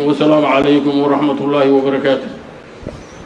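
A middle-aged man speaks steadily into a microphone, heard through a loudspeaker.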